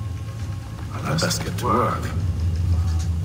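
A man speaks calmly in a low voice, close by.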